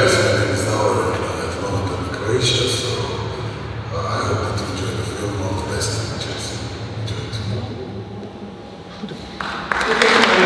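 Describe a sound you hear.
A man speaks calmly through loudspeakers in an echoing hall.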